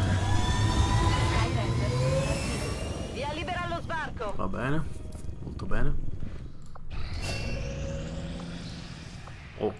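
Electronic menu sounds whoosh and chime.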